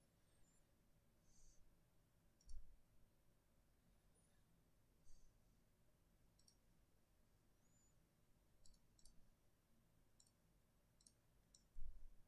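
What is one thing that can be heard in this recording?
Soft electronic menu blips and clicks sound now and then.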